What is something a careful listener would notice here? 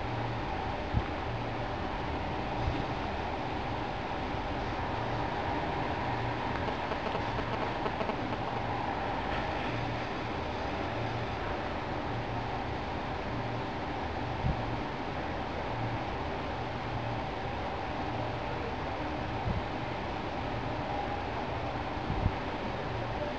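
A metal plate clinks and taps lightly as it is turned over by hand.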